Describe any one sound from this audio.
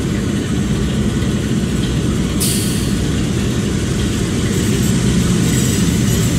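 An oncoming train rolls closer on the rails.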